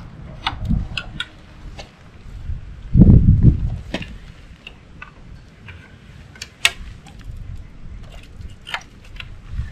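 Metal wire clicks and rattles against a frame.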